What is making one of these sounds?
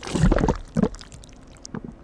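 A machine squirts and splats soft thick custard.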